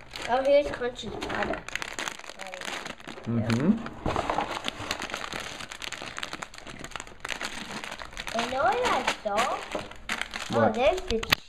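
Plastic bags of small toy bricks crinkle and rattle in hands.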